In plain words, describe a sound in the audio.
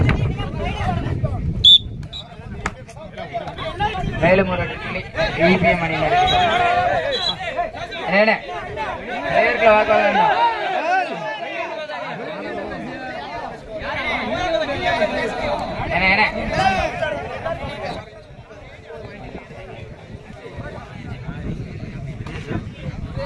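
A large outdoor crowd shouts and cheers.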